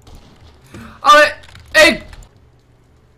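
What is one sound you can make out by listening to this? A young man shouts loudly into a close microphone.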